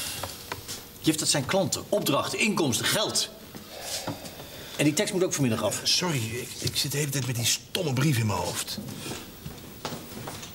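A middle-aged man speaks with animation nearby.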